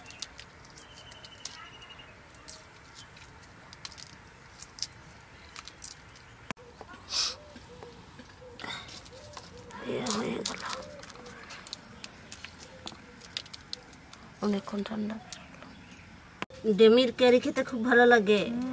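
Eggshells crackle and snap as fingers peel boiled eggs.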